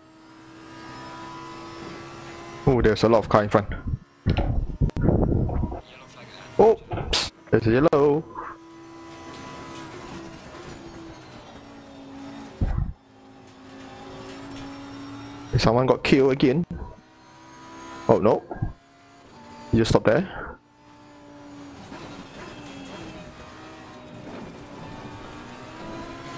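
A racing car engine roars and whines, rising and falling in pitch as it shifts gears.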